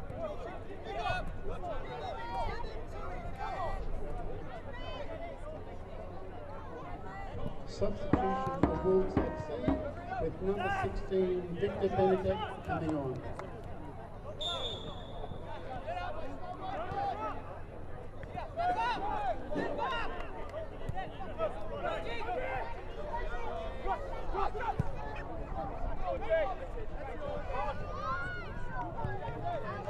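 A small crowd murmurs and calls out in the open air.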